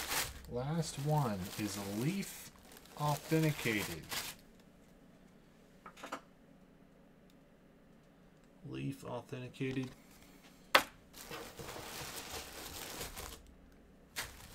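Tissue paper rustles and crinkles as hands dig through it.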